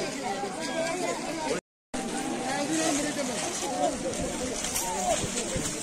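A crowd of women talk and murmur close by.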